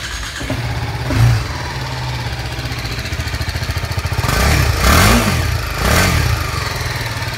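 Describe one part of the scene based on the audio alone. A motorcycle engine revs up loudly and drops back several times.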